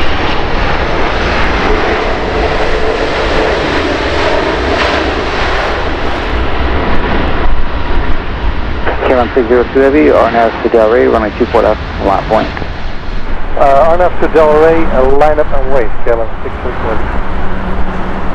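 Jet engines roar loudly as an airliner taxis past.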